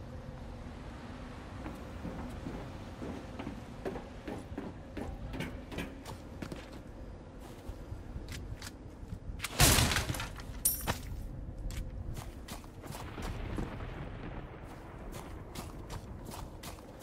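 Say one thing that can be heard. Footsteps crunch on gravel and wooden floors.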